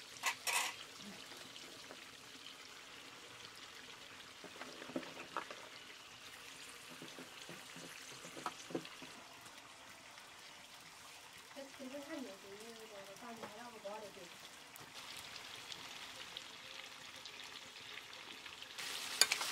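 Food sizzles and hisses in a hot pan.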